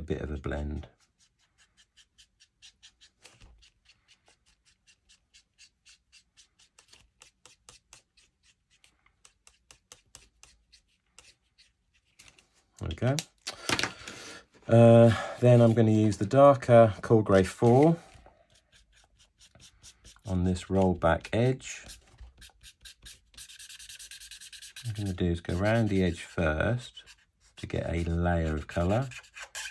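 A marker pen squeaks and scratches across paper in short strokes.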